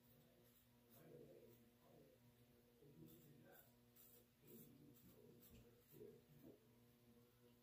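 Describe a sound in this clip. A razor scrapes faintly against stubble.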